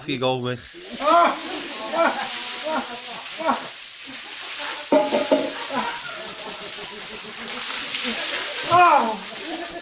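A middle-aged man gasps and yells loudly from the cold water nearby.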